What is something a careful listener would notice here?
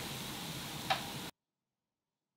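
Foam fizzes and crackles softly.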